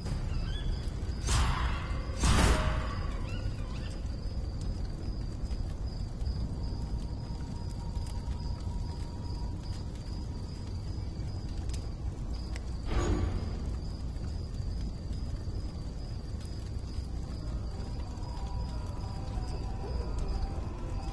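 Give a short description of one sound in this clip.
A fire crackles softly with a low rumble.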